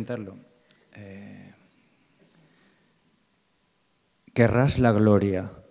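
A middle-aged man speaks calmly into a microphone, heard through a loudspeaker.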